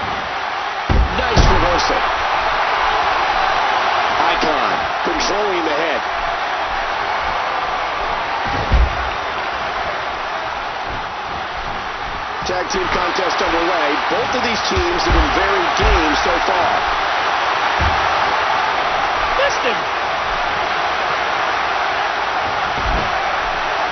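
Heavy thuds of bodies slamming onto a wrestling mat ring out now and then.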